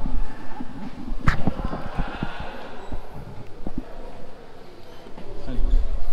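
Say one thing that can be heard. Wheels of a luggage trolley rattle over a tiled floor.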